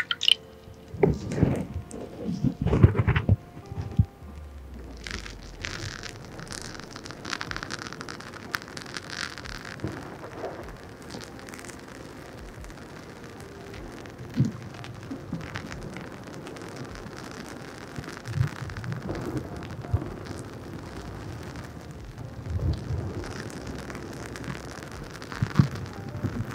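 A soft fluffy pad brushes and rubs over a microphone close up.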